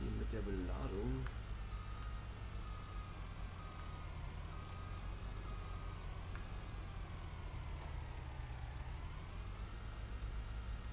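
A tractor engine rumbles steadily at low speed.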